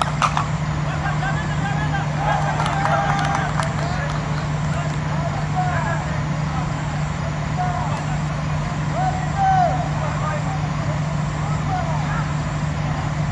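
Men shout and call out across an open field at a distance.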